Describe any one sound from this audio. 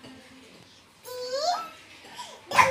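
A young child squeals with a rising voice close by.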